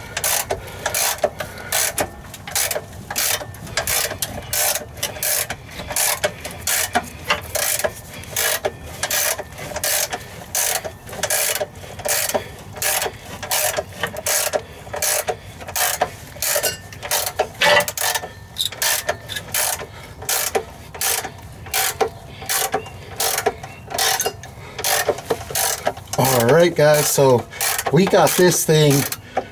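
A ratchet wrench clicks back and forth in quick, steady bursts.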